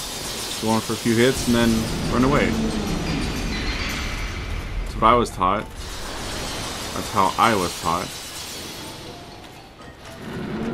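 Crystal breath blasts and hisses from a huge dragon.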